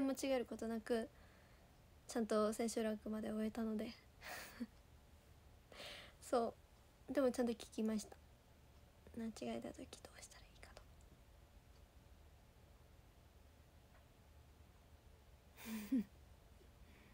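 A young woman speaks softly and haltingly, close by.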